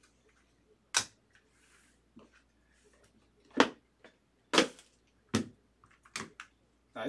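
Hard plastic cases click and clack as they are handled.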